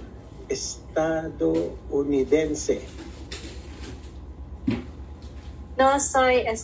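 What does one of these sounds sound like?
A man speaks over an online call.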